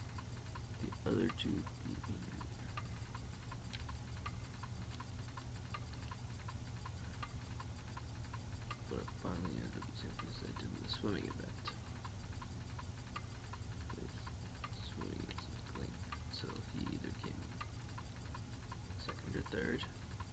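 A young man speaks casually into a nearby microphone, in short bursts.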